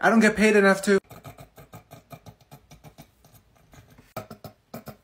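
A young woman giggles quietly in short bursts.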